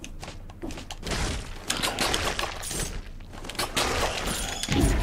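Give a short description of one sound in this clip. Sword slashes and heavy hits crash in a fast flurry of game combat sounds.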